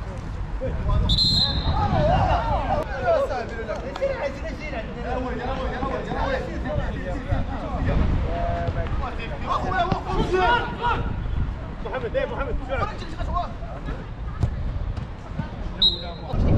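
Young men shout and call to each other across an outdoor pitch.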